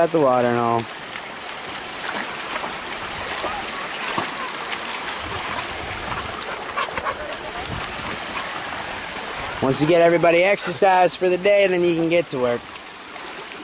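Dogs bay and howl loudly close by.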